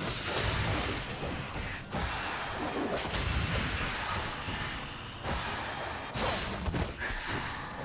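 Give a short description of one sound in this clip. Fantasy combat effects clash and crackle.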